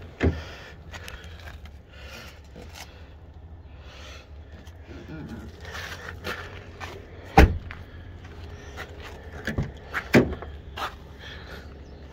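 A car door clunks shut nearby.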